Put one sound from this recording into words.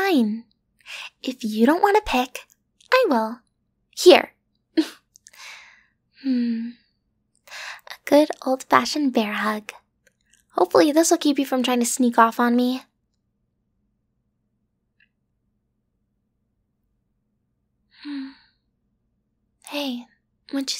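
A young woman speaks softly and playfully, close to a microphone.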